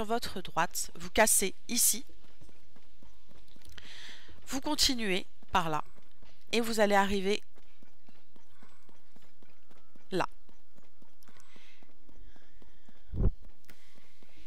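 Footsteps patter quickly on rock.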